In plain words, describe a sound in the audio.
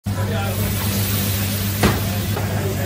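A squeeze bottle sputters as sauce is squirted out.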